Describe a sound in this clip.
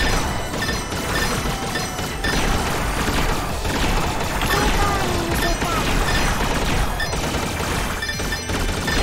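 Game music plays steadily with a driving beat.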